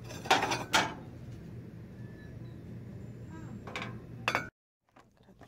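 Ceramic plates clink against each other.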